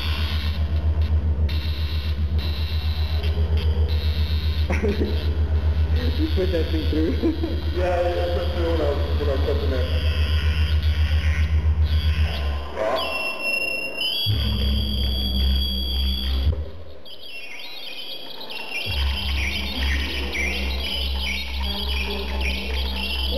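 Wood scrapes and rubs against wood.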